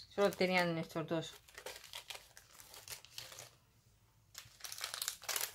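A plastic bag crinkles and rustles in someone's hands.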